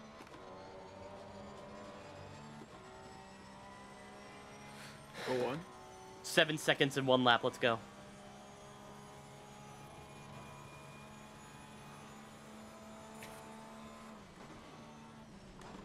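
A racing car engine hums steadily at high speed.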